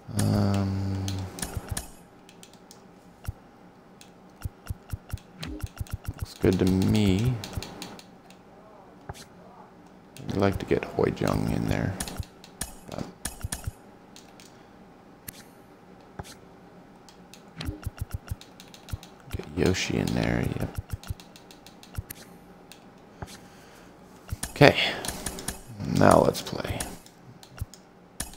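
Short menu clicks tick again and again as selections change.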